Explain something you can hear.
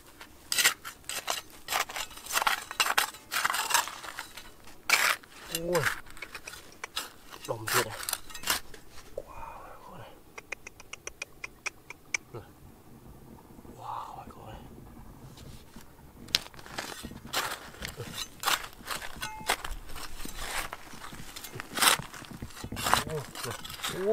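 Loose dirt and pebbles scatter and tumble.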